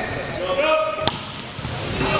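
A volleyball is struck hard with a loud slap.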